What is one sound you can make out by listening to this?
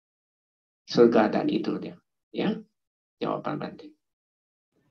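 A man speaks calmly into a microphone, heard through an online call.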